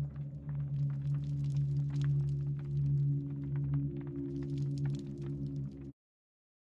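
A fire crackles and pops close by.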